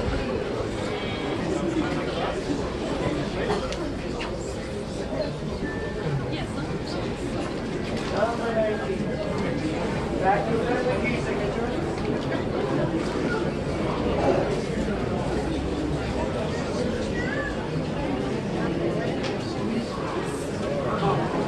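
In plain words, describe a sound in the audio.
A brass band plays a festive tune outdoors.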